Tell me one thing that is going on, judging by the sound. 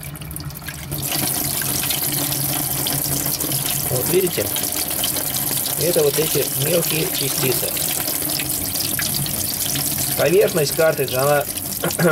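Water runs from a tap and splashes into a metal sink.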